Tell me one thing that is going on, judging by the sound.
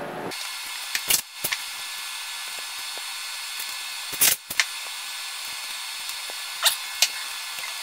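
A flexible plastic hose knocks and rattles as it is handled.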